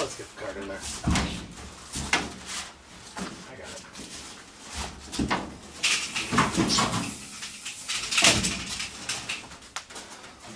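A heavy metal tank knocks and scrapes against a truck bed.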